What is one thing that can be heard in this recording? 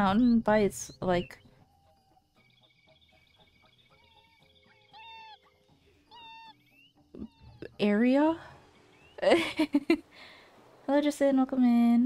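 A young woman talks animatedly close to a microphone.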